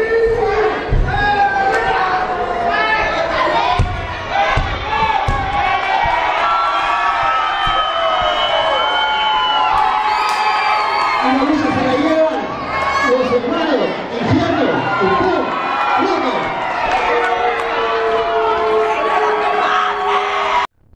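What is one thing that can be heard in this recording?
A large crowd shouts and whistles in an echoing hall.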